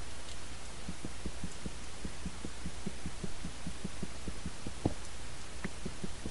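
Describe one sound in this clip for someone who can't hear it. A pickaxe chips at stone in quick, light taps.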